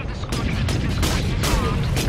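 Heavy gunfire bursts rapidly.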